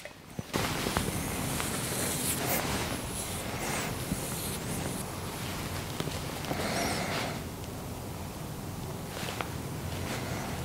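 Scissors snip through hair.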